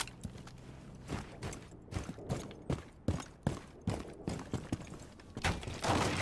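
Footsteps crunch quickly over snow and hard ground.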